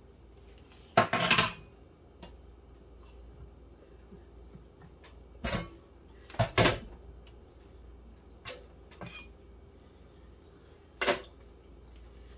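Dishes clatter and clink on a counter.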